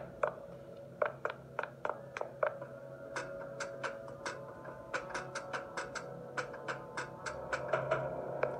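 Footsteps clang quickly on metal stairs.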